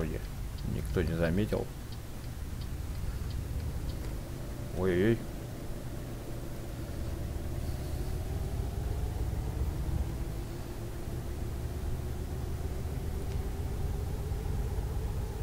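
A truck engine rumbles steadily and slowly rises in pitch.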